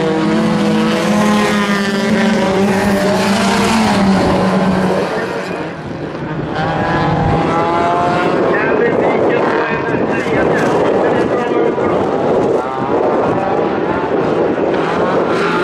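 Tyres scrabble and spray gravel on a loose track.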